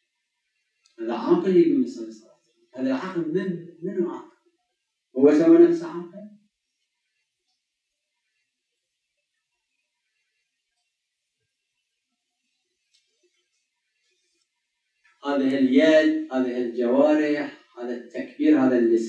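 An elderly man speaks calmly into a microphone, pausing at length between phrases.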